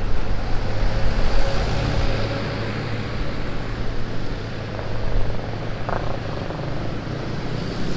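Traffic rumbles along a street outdoors.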